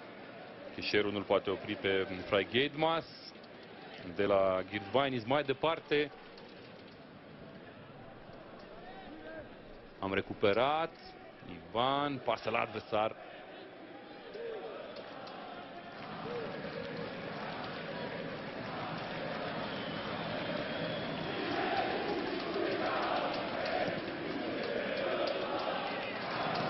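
A large stadium crowd murmurs and chants, growing louder.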